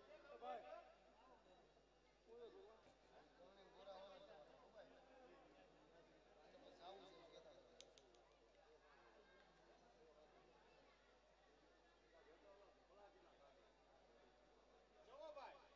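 A large crowd of men and women chatters and murmurs nearby.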